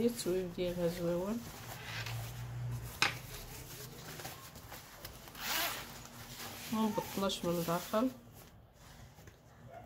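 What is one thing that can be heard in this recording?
A zipper rasps as it is pulled.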